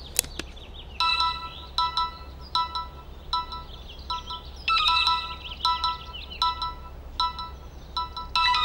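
A mobile phone rings with a repeating tune.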